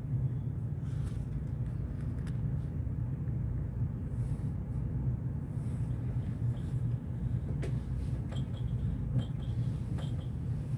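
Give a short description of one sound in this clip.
Paper pages rustle and flick close by.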